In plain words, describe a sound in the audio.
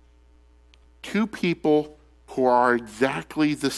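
A man speaks clearly through a microphone in a large echoing hall.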